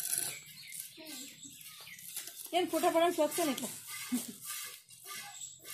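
A young child speaks close by, outdoors.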